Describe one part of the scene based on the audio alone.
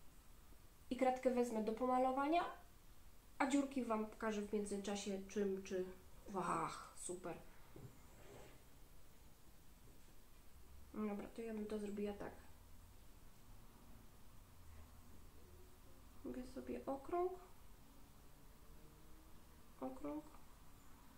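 A young woman speaks calmly close by, with pauses.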